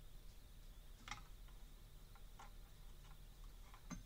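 Small plastic and metal parts click and tap as they are handled.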